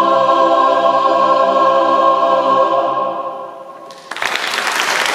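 A large choir sings a long held chord that rings out and fades in a big echoing hall.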